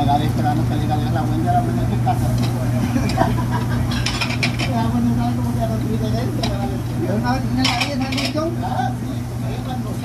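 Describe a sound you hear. An elderly man talks nearby.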